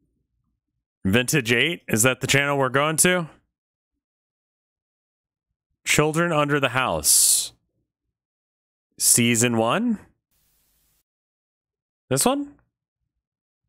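A man speaks casually in short bursts, close to a microphone.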